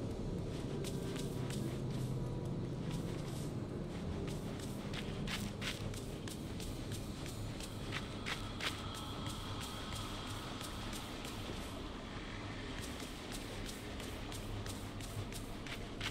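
Light footsteps patter quickly over soft ground.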